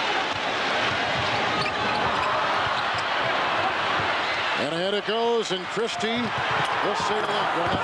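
A large crowd roars and cheers in a big echoing arena.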